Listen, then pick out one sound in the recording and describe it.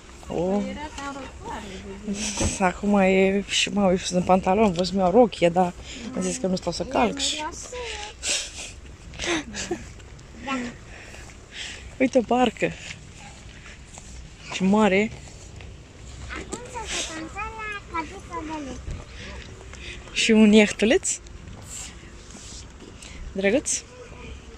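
A woman talks animatedly close by.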